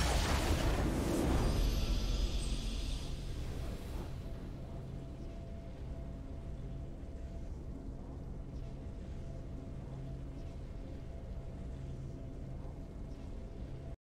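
A triumphant victory fanfare plays and then settles into soft music.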